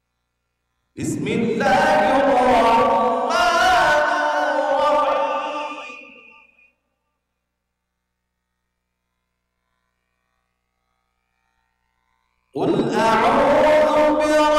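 A man chants a recitation loudly into a microphone, with long melodic phrases and pauses between them.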